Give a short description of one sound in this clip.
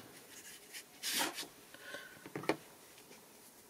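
A jar lid clicks and scrapes.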